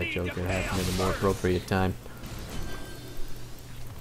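Spell blasts and weapon hits crackle in a skirmish.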